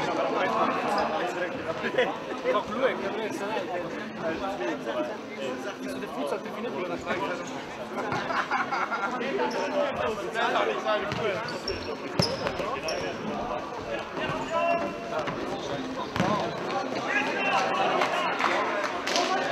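Sneakers squeak on the hall floor.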